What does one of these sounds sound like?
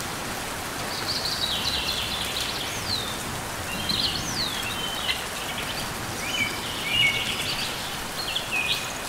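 A small bird chirps in short, high, squeaky calls.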